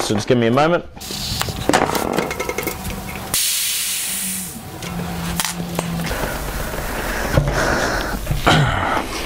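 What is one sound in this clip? A bicycle wheel's spokes and tyre rattle and scrape as they are handled.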